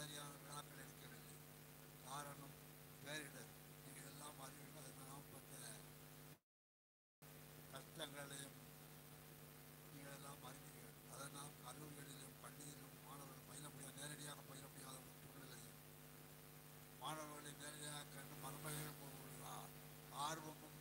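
An elderly man speaks steadily through a microphone and loudspeakers in a large echoing hall.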